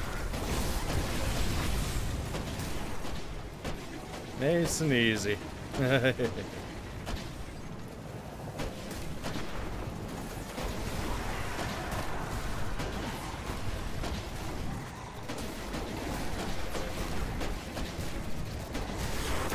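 Gunfire crackles rapidly in a video game.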